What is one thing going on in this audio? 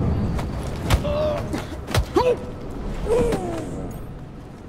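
A man groans and gasps as he is choked.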